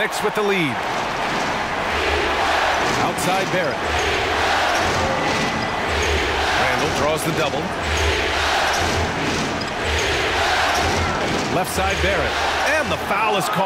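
A basketball bounces on a hardwood floor in a steady rhythm.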